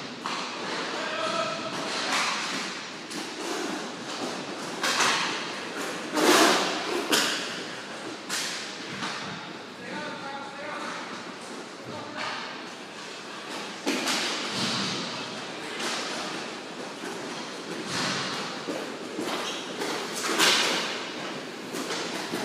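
Roller skate wheels roll and scrape on a hard floor.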